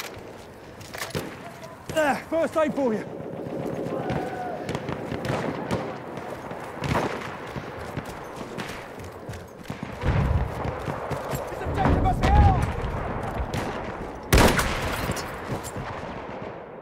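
Gunshots crack and boom in a battle.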